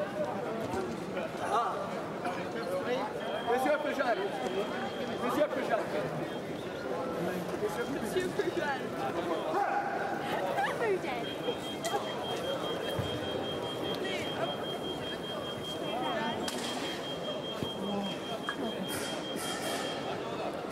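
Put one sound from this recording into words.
Several men talk and murmur in a large echoing hall.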